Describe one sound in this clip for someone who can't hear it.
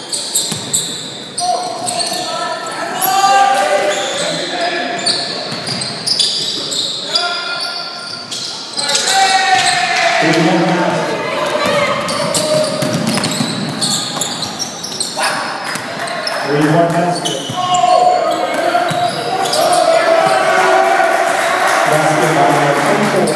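A basketball bounces on a hardwood court in an echoing gym.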